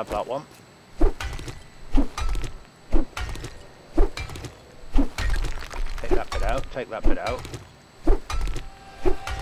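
A pickaxe strikes stone over and over.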